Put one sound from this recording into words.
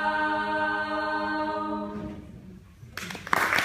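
A choir of young women sings a held chord that rings out and fades in an echoing hall.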